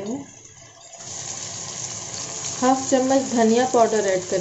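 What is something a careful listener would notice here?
Vegetables sizzle in a hot pan.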